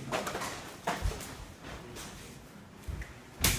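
Bare feet thump and shuffle on a wooden floor.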